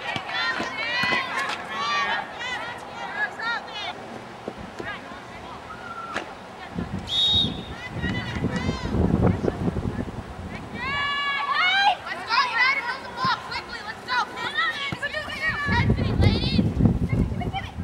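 Women and girls shout and cheer from the sidelines at a distance.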